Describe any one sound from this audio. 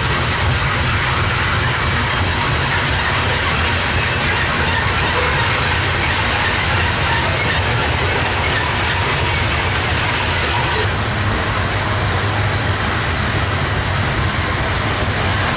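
A freight train rumbles steadily past, its wheels clattering on the rails.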